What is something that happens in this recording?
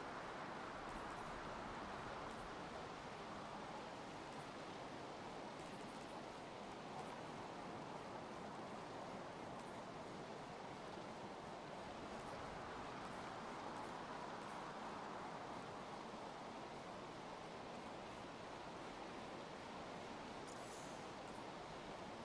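Soft menu ticks sound now and then as a cursor moves.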